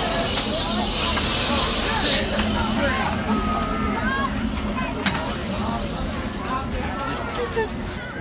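A steam locomotive rumbles low while idling.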